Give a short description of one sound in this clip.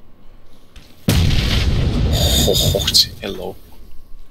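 A flare fizzes and hisses as it is fired.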